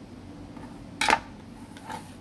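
A knife clatters down onto a wooden board.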